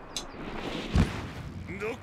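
A heavy hammer strikes the ground with a loud thud.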